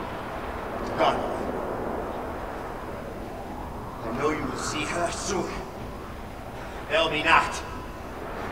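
A man speaks in short bursts in a large echoing hall.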